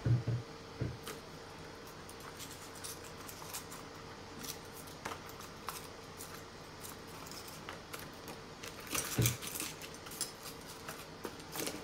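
A knife taps and knocks on a plastic cutting board.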